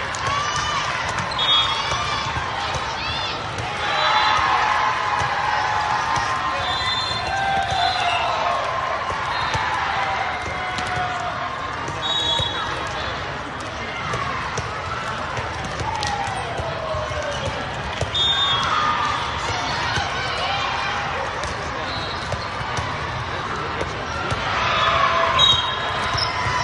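Volleyball players call out and shout in a large echoing hall.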